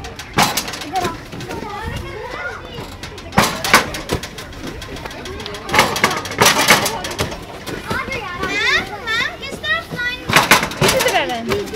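Children jump and land with dull thuds on hard ground.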